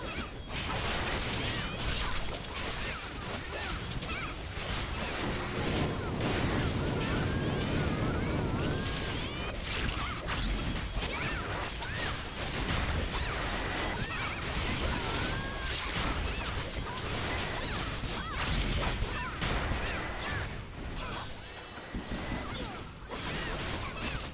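Spell blasts and weapon strikes clash and crash in a fight.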